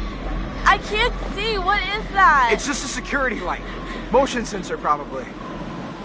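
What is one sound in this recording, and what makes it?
A young woman speaks anxiously.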